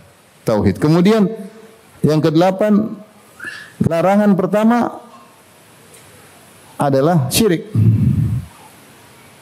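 A man lectures calmly into a microphone, in short phrases with pauses.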